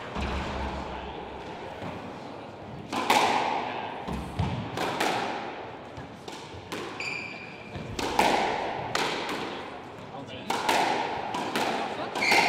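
A squash ball smacks sharply off rackets and walls in a hard, echoing court.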